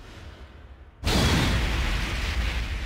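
A loud whooshing blast bursts in.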